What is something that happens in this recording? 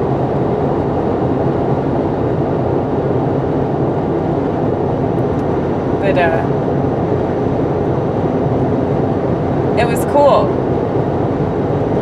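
A car rumbles steadily, heard from inside as it drives.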